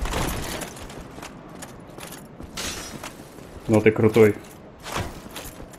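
Armoured footsteps clank up stone stairs.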